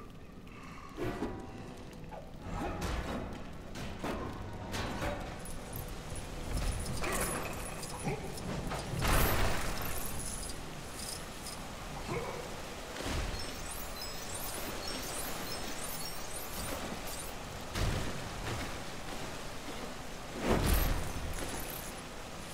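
Heavy smashing thuds and crashes sound again and again.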